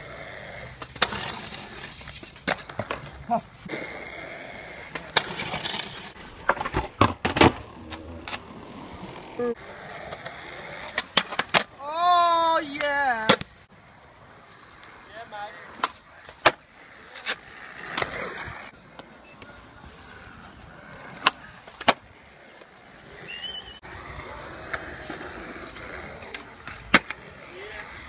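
A skateboard clacks sharply against concrete.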